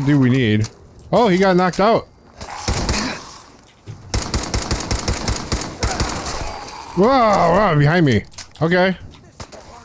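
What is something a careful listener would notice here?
A gun is reloaded with metallic clicks.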